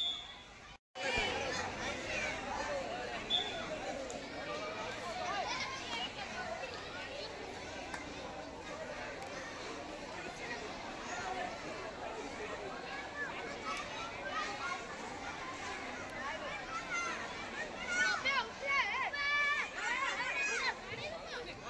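A crowd of schoolboys shouts and cheers outdoors.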